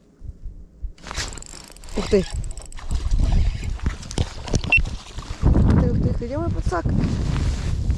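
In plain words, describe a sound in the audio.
A fish splashes and thrashes in the water.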